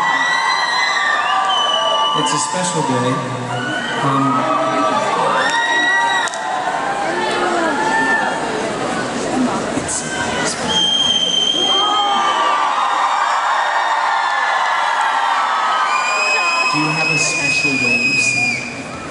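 A large crowd screams and cheers loudly in a big echoing arena.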